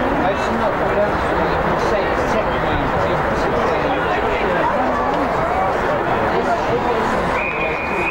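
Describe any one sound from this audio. Spectators and players shout and call out across an open field.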